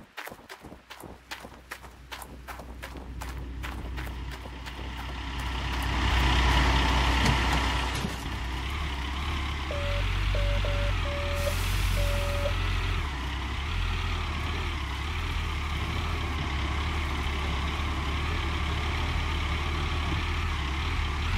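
A diesel excavator engine rumbles steadily.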